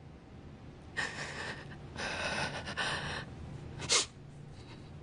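A young woman speaks softly, almost in a whisper.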